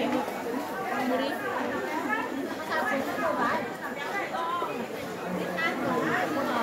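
A crowd of men and women chatters all around, close by.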